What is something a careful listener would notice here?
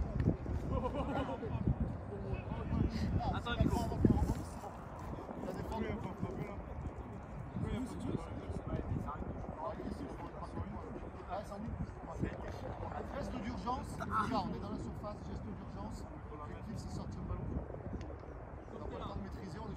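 Men talk and call out at a distance in the open air.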